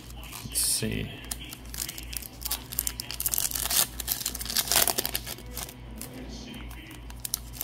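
Foil wrappers crinkle and rustle up close.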